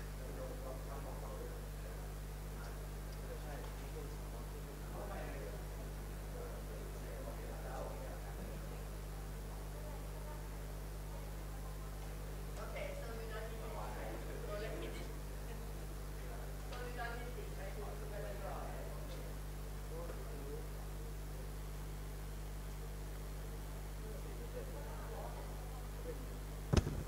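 Young students talk among themselves at close range.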